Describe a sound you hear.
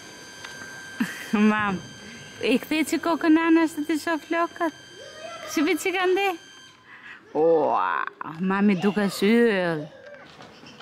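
A small child talks and sings in a high voice close by.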